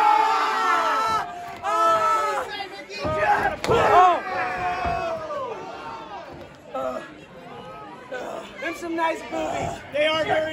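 A woman screams loudly in pain, close by.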